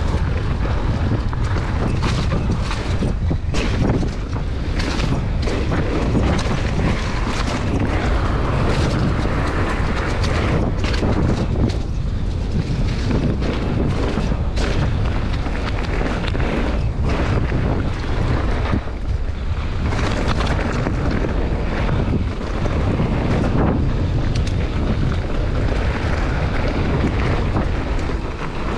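Bicycle tyres crunch and rattle over a dirt and gravel trail.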